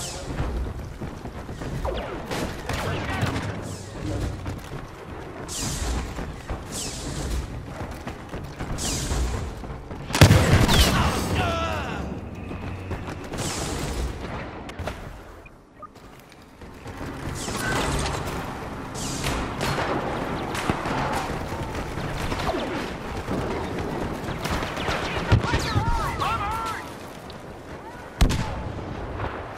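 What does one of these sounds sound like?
Blaster shots zap and crackle in quick bursts.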